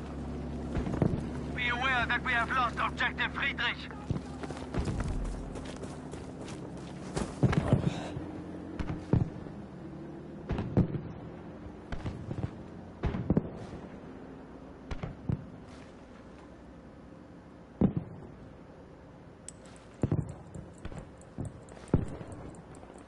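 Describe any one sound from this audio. Gunshots crack out one after another and echo.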